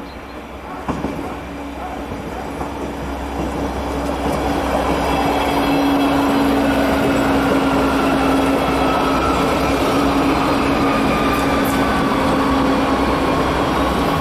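A diesel train rumbles closer and passes close by, growing loud.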